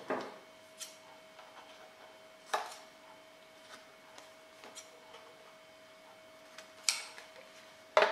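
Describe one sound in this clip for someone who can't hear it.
Scissors snip through card.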